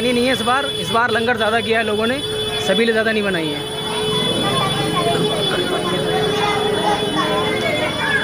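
A crowd of people chatters all around.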